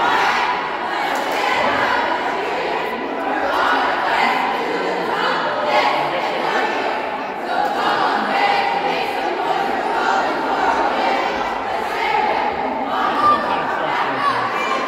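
A group of girls shout cheers together in unison in a large echoing gym.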